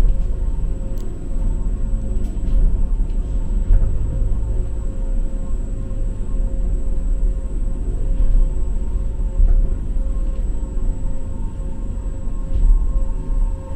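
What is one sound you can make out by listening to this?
An escalator hums and rattles steadily as it moves.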